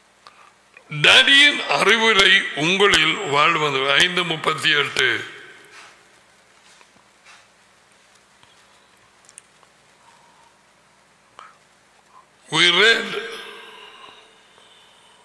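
An elderly man speaks closely into a microphone, in a slow, deep voice.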